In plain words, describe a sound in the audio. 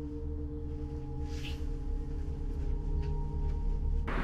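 A man's footsteps walk away on a hard floor.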